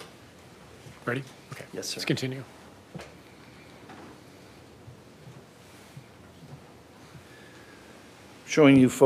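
A middle-aged man speaks briefly and haltingly into a microphone.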